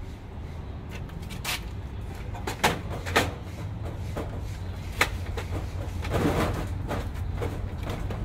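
Metal parts clink and knock as they are handled.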